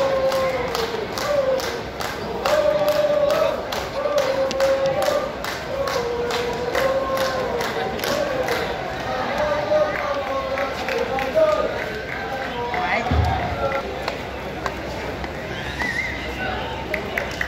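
A crowd of young men and women chants loudly.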